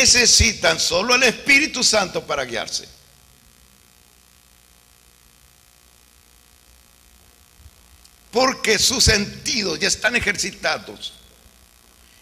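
An older man speaks with animation into a microphone, pausing between phrases.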